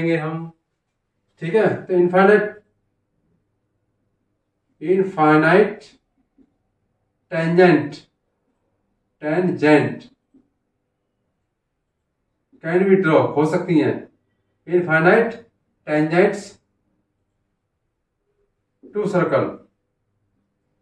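A man speaks calmly and clearly in short phrases, close by.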